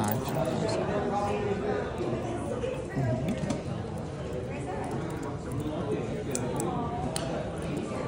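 A metal watch bracelet clicks as it is fastened.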